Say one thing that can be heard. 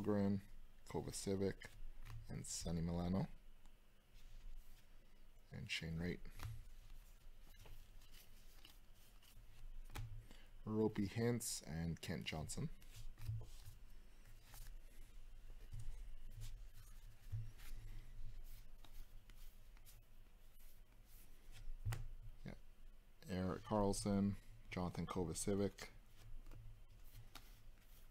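Trading cards rustle and slide against each other as they are flipped through.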